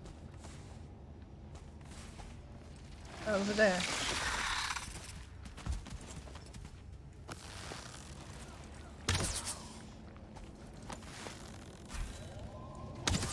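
Footsteps thud softly on a stone floor.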